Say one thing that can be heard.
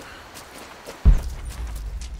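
A heavy thud sounds as someone lands from a jump.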